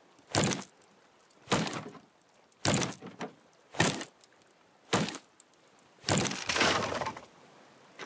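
A hoe chops into loose soil with repeated scraping thuds.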